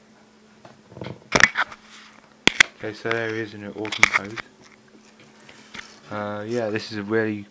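Plastic toy pieces clatter and knock together.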